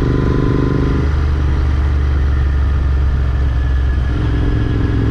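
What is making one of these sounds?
A motorcycle engine's pitch drops briefly as it changes gear.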